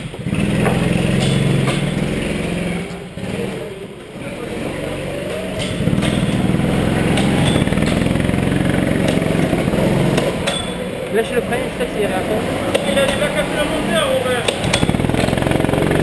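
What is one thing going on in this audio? A go-kart engine idles and drones close by.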